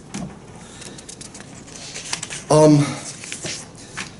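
Sheets of paper rustle.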